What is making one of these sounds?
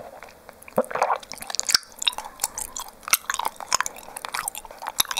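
A young woman whispers softly very close to a microphone.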